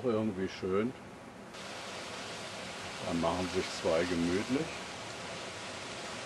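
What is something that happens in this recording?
Waves wash against rocks by the sea.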